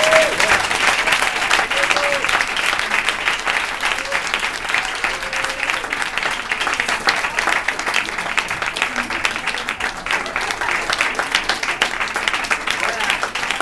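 A crowd of people chatters loudly nearby.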